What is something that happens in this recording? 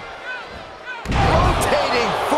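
A heavy body slams hard onto a wrestling mat with a loud thud.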